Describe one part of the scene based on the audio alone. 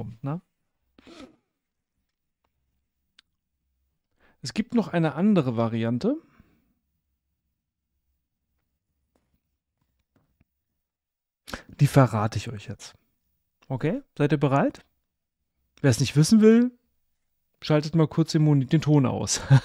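A man speaks with animation into a close microphone, laughing at times.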